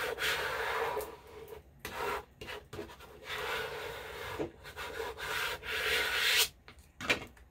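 A plastic scraper scrapes across a canvas with a rough, rasping sound.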